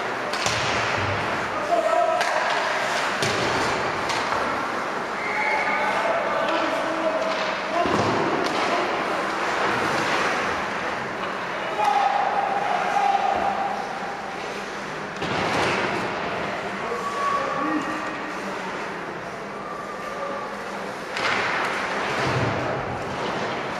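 Hockey skates scrape across the ice in a large echoing rink.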